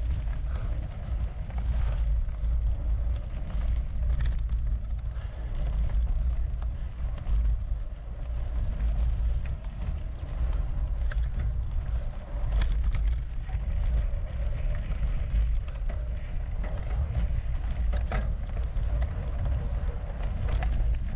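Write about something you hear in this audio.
A bicycle rattles and clicks over bumps.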